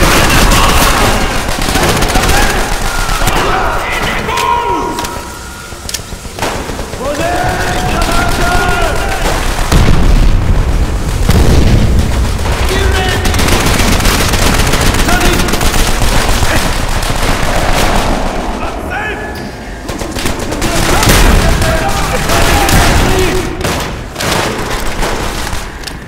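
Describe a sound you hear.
Gunshots fire in bursts indoors.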